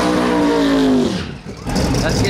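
Tyres spin and screech.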